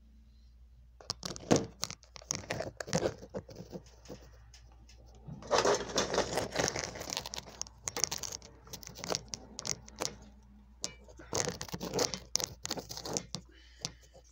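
Electric guitar strings are strummed unplugged, close by.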